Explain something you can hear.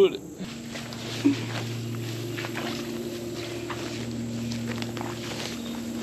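Footsteps swish through dense ferns.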